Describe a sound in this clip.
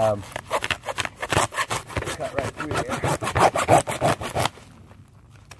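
A hand saw cuts quickly back and forth through wood.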